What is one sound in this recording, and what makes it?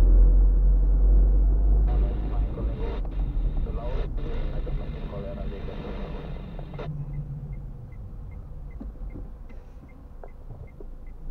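A car engine rumbles low inside the cabin, growing quieter as the car slows.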